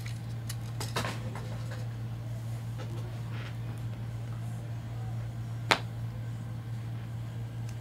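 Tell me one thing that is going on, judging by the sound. Stacks of card packs tap and shuffle on a table.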